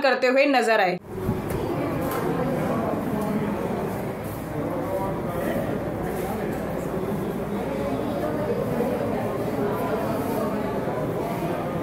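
A crowd of men and women chatter indistinctly in a large room.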